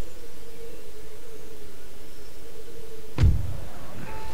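A soft thud sounds as a game menu opens.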